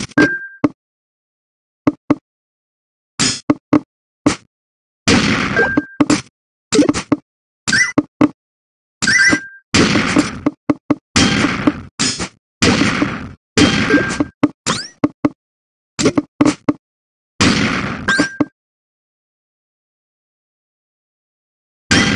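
Short electronic game sound effects click and crash as falling blocks land and rows clear.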